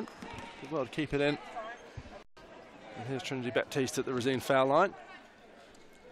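A basketball bounces on a wooden court indoors.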